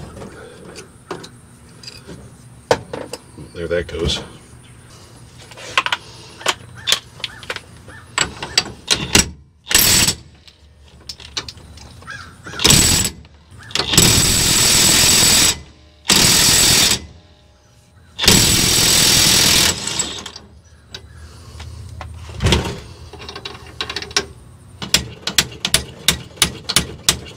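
Metal tools clink and clatter.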